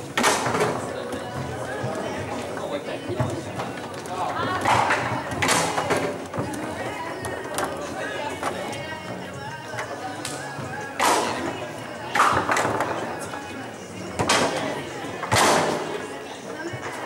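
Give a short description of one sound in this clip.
Foosball rods clatter and a ball knocks sharply against a table.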